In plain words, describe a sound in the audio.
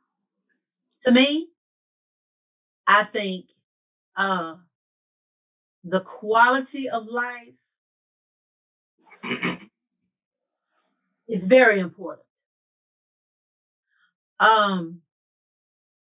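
An elderly woman speaks in short, halting bursts over an online call.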